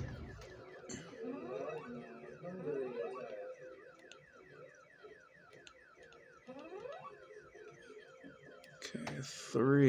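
A handheld game console plays rapid, repeating falling electronic chirps.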